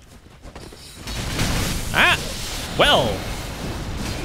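A magic blast roars and crackles in a burst.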